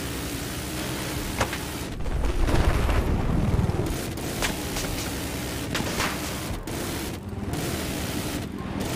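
A helicopter's rotor thrums steadily.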